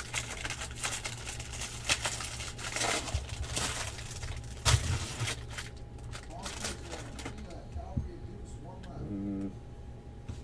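Cardboard packs tap and slide against each other.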